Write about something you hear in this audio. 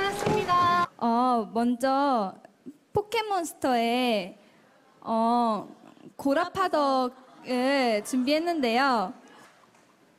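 A young woman sings through a microphone in a wavering voice.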